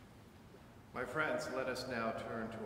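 A man speaks calmly nearby, echoing in a large hall.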